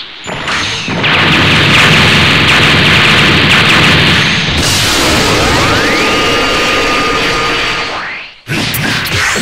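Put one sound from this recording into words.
A loud energy beam roars and blasts.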